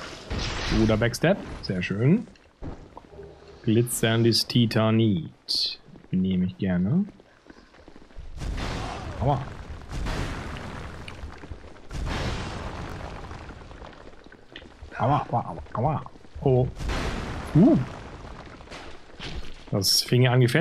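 A man speaks with animation close to a headset microphone.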